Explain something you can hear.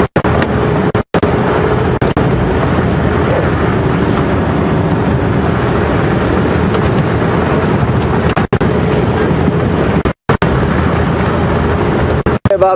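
An open vehicle's engine rumbles steadily as it drives.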